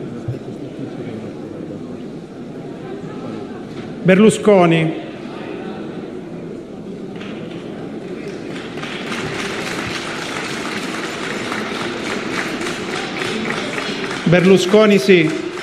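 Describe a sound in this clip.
A crowd of men and women murmurs and chats in a large echoing hall.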